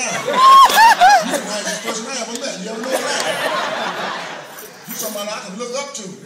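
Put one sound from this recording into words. A young woman laughs and talks excitedly close by.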